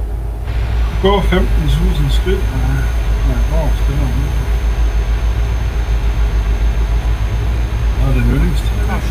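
A truck engine rumbles steadily at cruising speed.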